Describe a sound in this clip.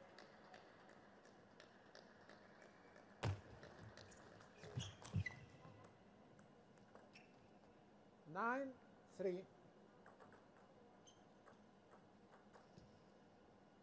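A ping-pong ball clicks quickly back and forth on paddles and a table.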